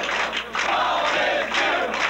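A group of men sing loudly together.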